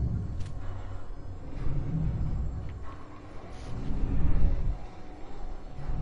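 A heavy sliding door hisses open.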